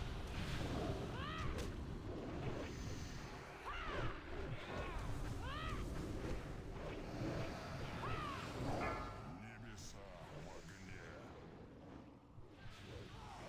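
Magic spells whoosh and crackle amid a rumbling battle.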